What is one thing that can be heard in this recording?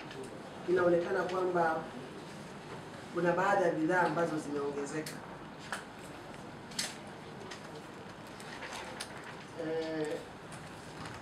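A man reads out calmly through a microphone, with pauses.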